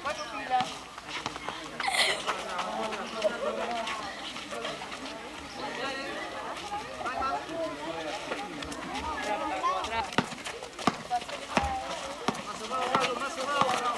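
A basketball bounces on hard ground.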